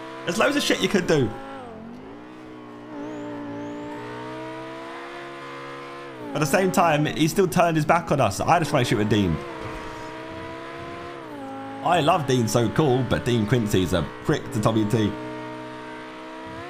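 A sports car engine hums steadily, rising and falling in pitch as the car drives.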